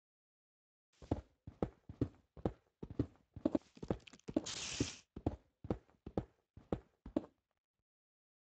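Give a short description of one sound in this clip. A pickaxe digs repeatedly into dirt with quick crunching thuds.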